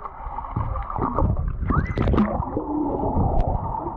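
A body plunges into the water with a splash.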